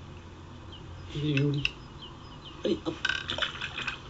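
A fish splashes as it drops into water.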